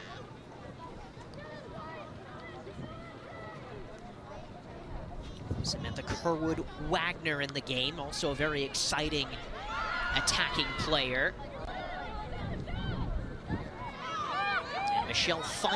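A crowd of spectators murmurs and cheers in the distance outdoors.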